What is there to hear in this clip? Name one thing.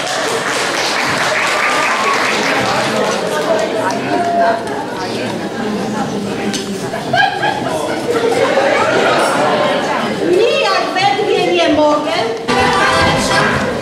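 A group of elderly women sing and talk on a stage, heard from the audience in a large hall.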